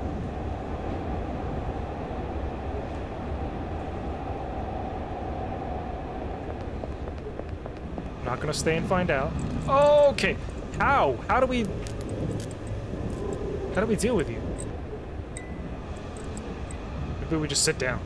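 A train car rumbles steadily along the tracks.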